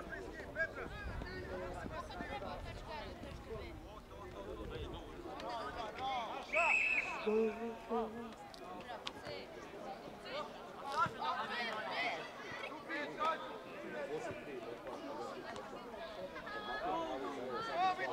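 Young players shout and call out to each other on an open field.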